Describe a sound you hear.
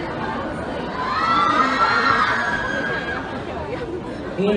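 A crowd of young women screams shrilly.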